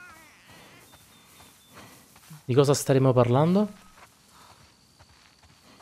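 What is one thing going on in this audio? Footsteps swish through tall dry grass.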